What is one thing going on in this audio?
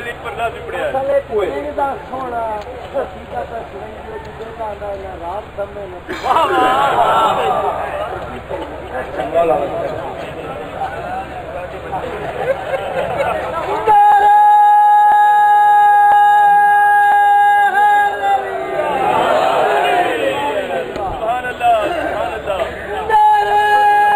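A man speaks with animation into a microphone, heard through loudspeakers.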